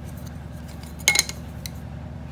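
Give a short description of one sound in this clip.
A wooden ruler knocks onto a hard surface.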